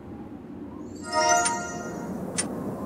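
A bright magical chime rings as pieces snap together.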